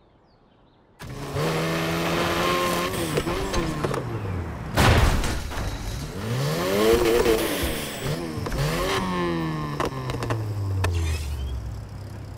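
A car engine revs hard and whines up and down through the gears.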